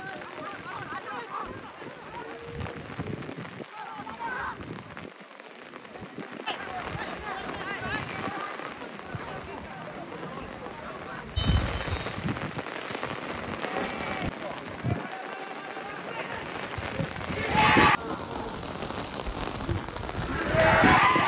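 Young men shout and call out to each other at a distance outdoors.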